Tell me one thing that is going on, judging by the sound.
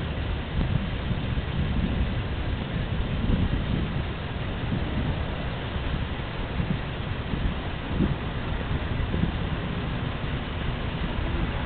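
Traffic rumbles steadily along a distant road.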